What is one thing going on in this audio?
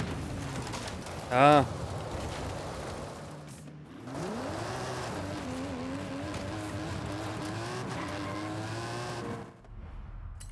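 A car engine roars and revs up while driving fast.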